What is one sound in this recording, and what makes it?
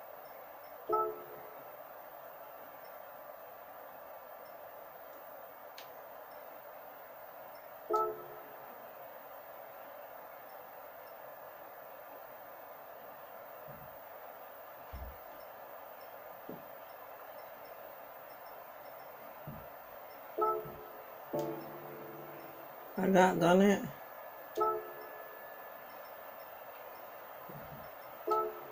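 Short electronic menu tones chime from a television speaker now and then.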